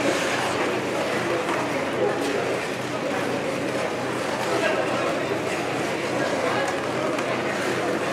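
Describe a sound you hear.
Skate blades scrape softly on the ice.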